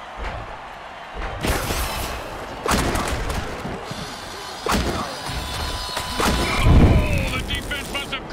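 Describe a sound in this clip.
Armoured players crash into each other with heavy thuds.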